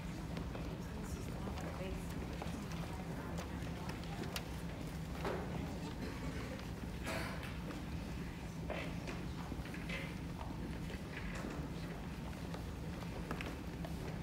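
Footsteps shuffle and thud on a wooden stage.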